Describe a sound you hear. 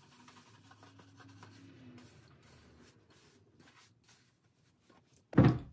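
A brush scrubs softly against leather.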